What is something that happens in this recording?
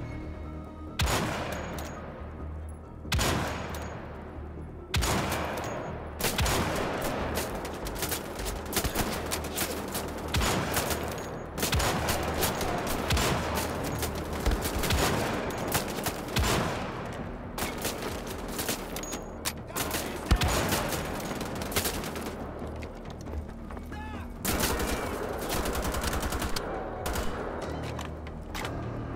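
Gunshots crack repeatedly with sharp echoes.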